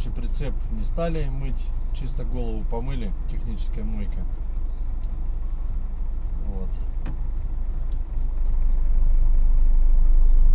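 A vehicle engine hums low and steady while driving.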